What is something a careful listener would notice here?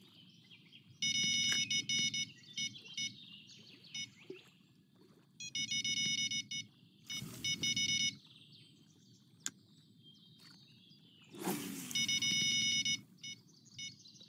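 A fishing reel whirs in short bursts as line is wound in.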